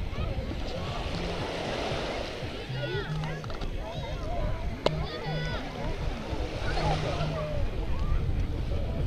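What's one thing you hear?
Small waves wash gently onto the shore.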